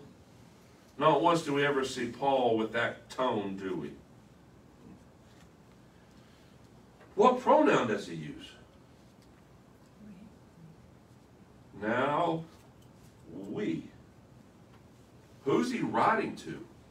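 A middle-aged man speaks calmly in short phrases with pauses, close by.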